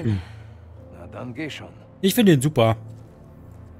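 A man speaks in a low voice.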